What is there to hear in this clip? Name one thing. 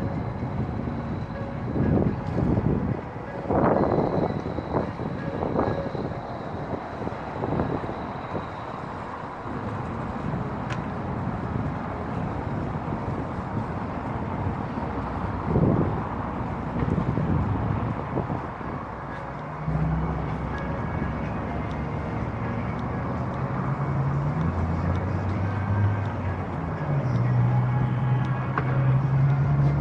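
Footsteps tread on paved ground outdoors.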